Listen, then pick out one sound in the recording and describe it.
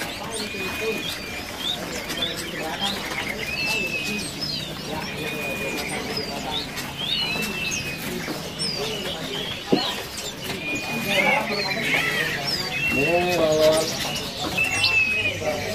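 Caged birds chirp and whistle repeatedly nearby.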